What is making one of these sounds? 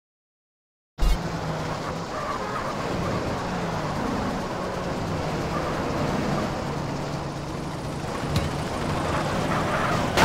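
Car engines roar as cars speed down a road.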